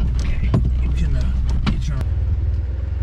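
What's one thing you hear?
Rain patters on a vehicle's roof and windshield.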